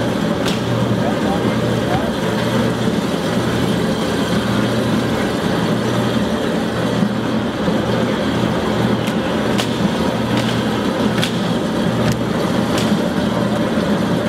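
Plastic crates knock against a metal hopper.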